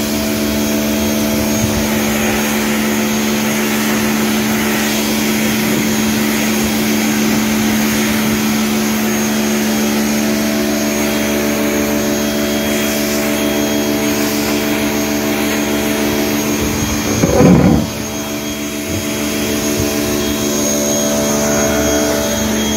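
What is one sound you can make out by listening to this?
A pressure washer motor hums steadily nearby.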